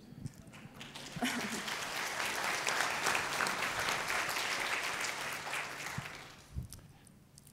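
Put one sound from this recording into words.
An audience claps and laughs.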